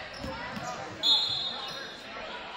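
A referee's whistle blows once, short and shrill.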